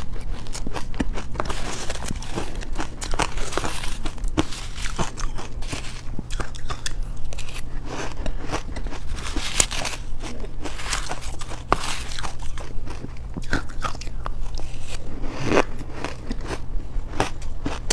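A young woman slurps and breathes out close to a microphone.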